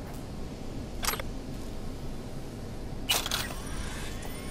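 Short electronic chimes sound as items are picked up.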